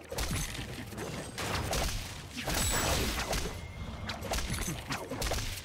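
Magic spells whoosh and crackle with bursts of impact.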